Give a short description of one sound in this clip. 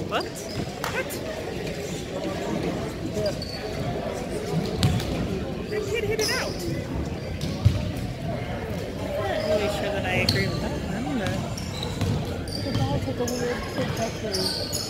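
A crowd of spectators murmurs and calls out in an echoing gym.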